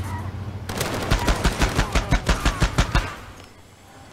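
A machine gun fires a rapid burst of shots.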